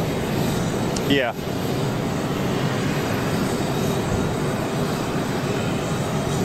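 A tug engine rumbles steadily.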